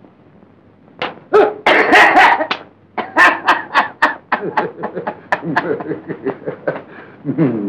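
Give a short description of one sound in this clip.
A man laughs loudly and menacingly.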